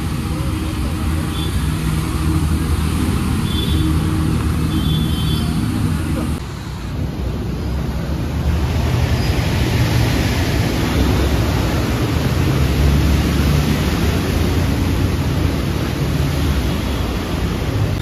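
Floodwater splashes and rushes around passing wheels.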